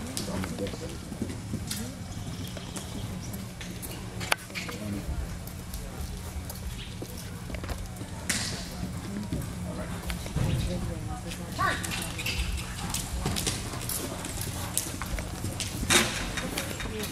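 A horse's hooves thud on soft ground as it gallops and jumps.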